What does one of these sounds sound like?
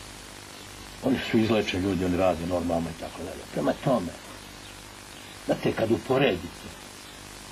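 A middle-aged man speaks calmly into a nearby microphone, in short bursts.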